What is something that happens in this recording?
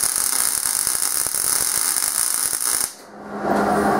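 A welding arc crackles and hisses loudly.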